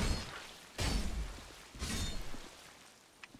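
Sword blows clash and thud.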